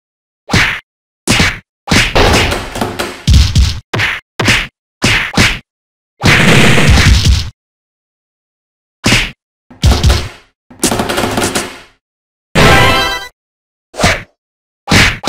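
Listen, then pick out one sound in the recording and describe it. Punches and kicks land with sharp, heavy thuds in quick bursts.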